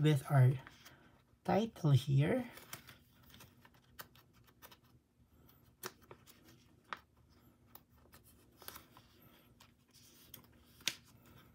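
Plastic binder sleeves crinkle softly as cards slide into them.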